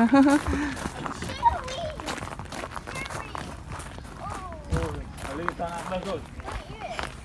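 Young children shout and call out nearby, outdoors.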